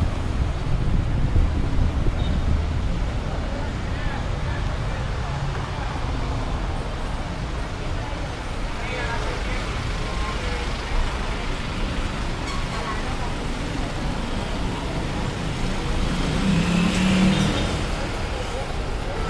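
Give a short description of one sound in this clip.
Street traffic hums steadily nearby.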